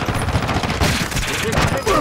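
An automatic rifle fires bursts.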